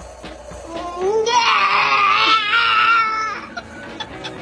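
A baby babbles and squeals nearby.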